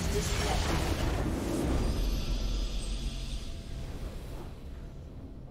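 A triumphant fanfare plays and fades out.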